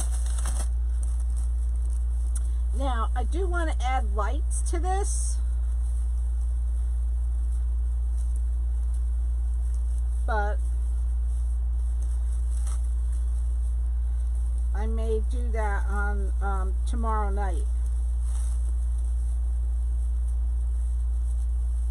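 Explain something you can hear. Hands rustle and crinkle stiff mesh and tinsel.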